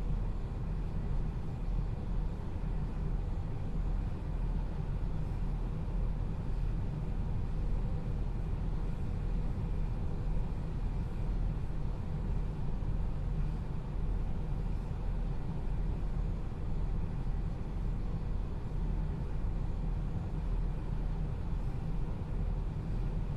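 A train's motor hums with a low steady drone.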